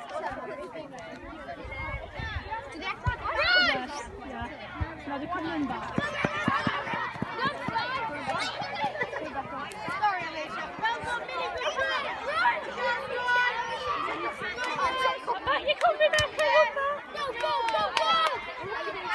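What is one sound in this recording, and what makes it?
A crowd of children shouts and cheers excitedly nearby.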